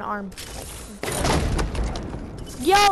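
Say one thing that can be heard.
A supply crate opens with a rushing whoosh in a game.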